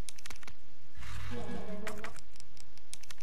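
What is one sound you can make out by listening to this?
A heavy metal case lid creaks and thuds open.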